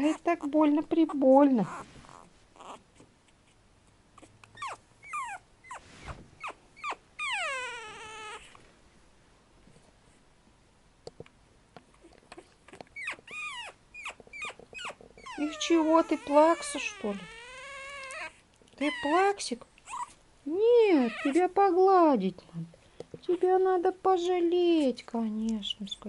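A small puppy whines and yips in high little cries.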